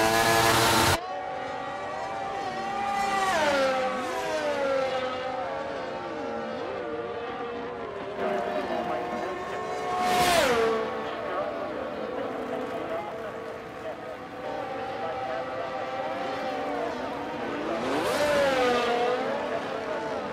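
A racing car engine whines past at a distance, rising and falling in pitch.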